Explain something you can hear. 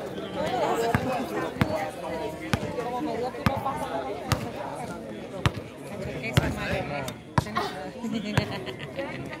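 A basketball bounces sharply on a hard outdoor court.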